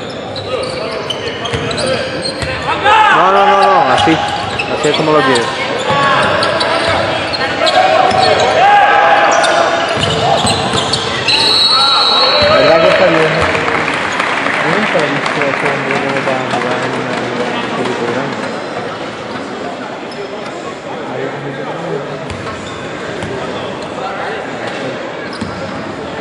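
A crowd shouts and chants in a large echoing hall.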